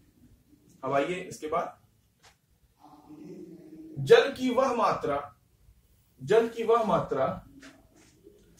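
A man speaks calmly and explains, close by.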